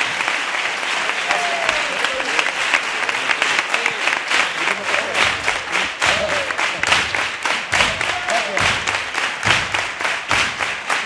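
A large audience applauds and cheers loudly in a big hall.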